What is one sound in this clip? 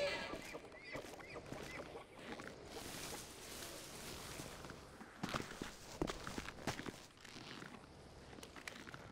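Footsteps crunch through dry undergrowth.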